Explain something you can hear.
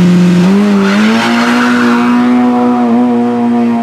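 Tyres squeal as a car pulls away hard.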